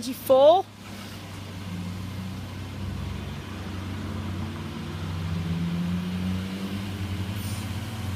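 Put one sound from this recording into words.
A diesel train engine rumbles as the train approaches, growing louder.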